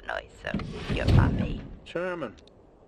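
A woman speaks tersely through a radio.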